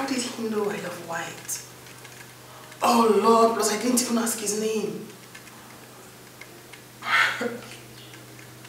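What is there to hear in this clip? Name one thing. A young woman speaks softly and with warmth, close by.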